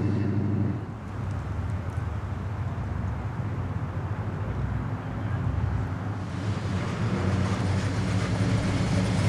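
A third car's engine idles with a low burble as it rolls forward.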